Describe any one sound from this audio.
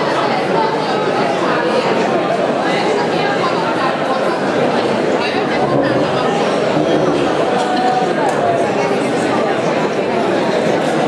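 A crowd of people chatters and murmurs nearby.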